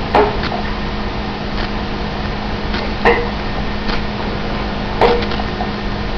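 A glass bottle is struck sharply with a hand several times.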